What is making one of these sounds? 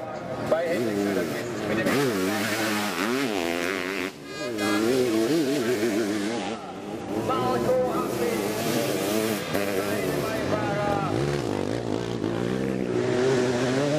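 Sidecar motorcycle engines rev and whine loudly as they race past.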